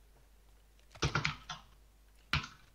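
A metal loot bin clanks open.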